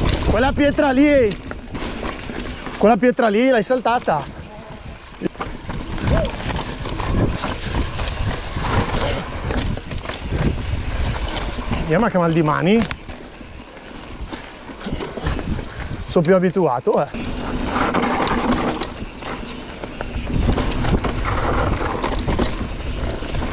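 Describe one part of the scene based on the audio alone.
A mountain bike rattles and clatters over bumps.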